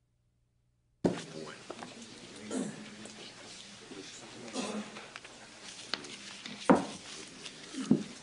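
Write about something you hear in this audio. A middle-aged man speaks calmly through a microphone, as if reading out.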